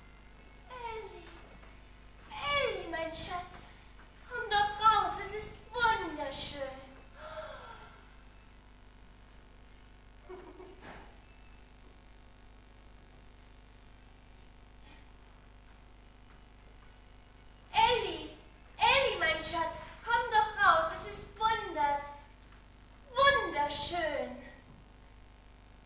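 A woman sings on a stage in a large hall, her voice echoing.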